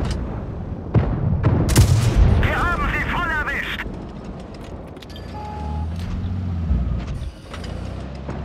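Tank guns fire with loud booms.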